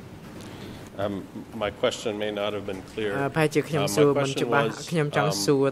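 A middle-aged man speaks steadily into a microphone.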